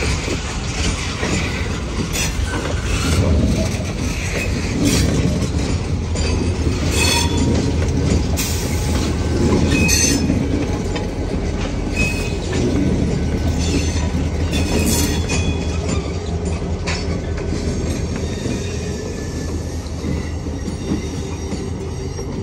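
Diesel locomotive engines roar loudly as they pass.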